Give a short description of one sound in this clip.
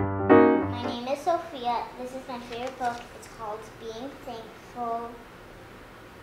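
A young girl speaks calmly and clearly, close by.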